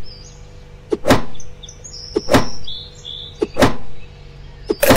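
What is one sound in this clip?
An axe chops into a tree trunk with heavy thuds.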